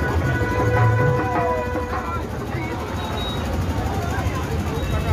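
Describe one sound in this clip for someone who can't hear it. A noisy street crowd chatters and shouts outdoors.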